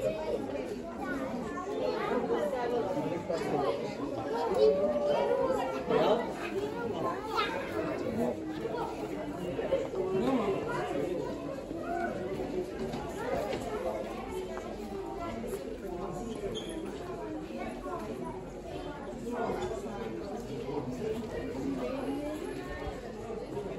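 Many people chatter around the room, heard indoors with a light echo.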